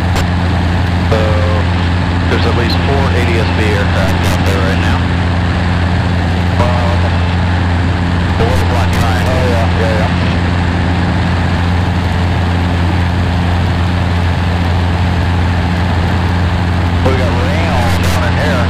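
A middle-aged man talks calmly over a headset radio intercom, now and then.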